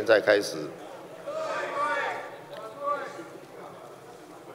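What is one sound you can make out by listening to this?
A man speaks formally into a microphone in a large echoing hall.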